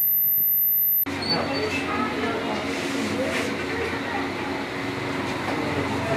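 Men and women talk at once in a small, busy room.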